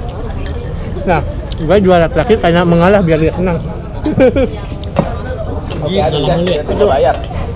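Young men talk and laugh loudly close by.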